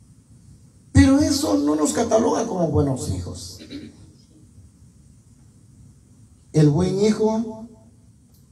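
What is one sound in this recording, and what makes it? A man speaks loudly through a microphone and a loudspeaker in a room with some echo.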